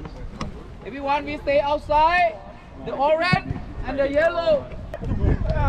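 A man speaks loudly to a group outdoors.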